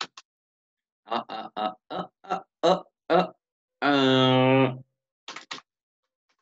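A man speaks calmly into a microphone, heard through an online call.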